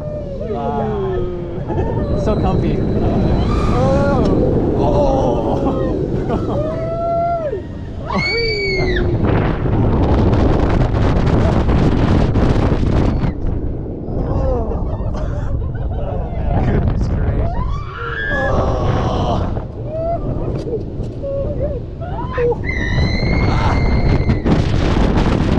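Riders scream and shout with excitement close by.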